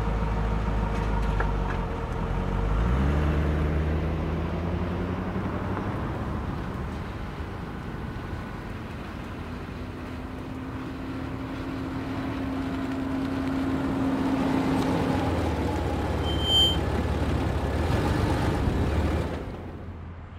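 A car engine rumbles and revs as the car drives slowly.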